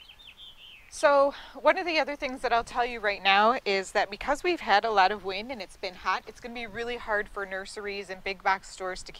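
A woman talks calmly and clearly, close to the microphone.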